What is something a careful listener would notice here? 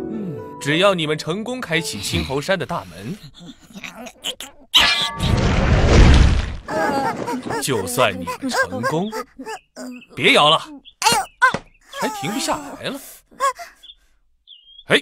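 A young voice speaks with animation.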